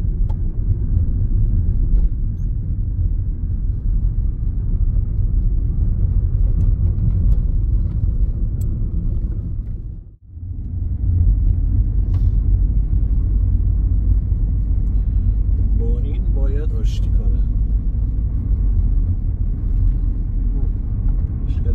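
Tyres rumble over a rough dirt road.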